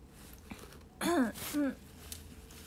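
A young girl speaks softly close to a microphone.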